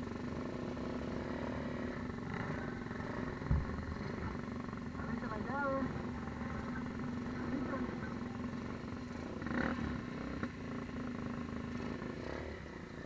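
A quad bike engine revs close by.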